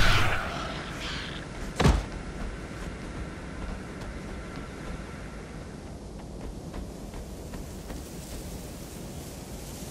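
Light footsteps patter steadily on dry ground.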